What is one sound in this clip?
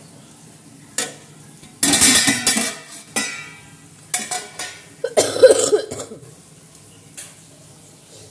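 A metal spoon scrapes and clinks against a pot.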